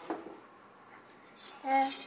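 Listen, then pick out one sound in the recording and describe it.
A spoon clinks on a hard floor.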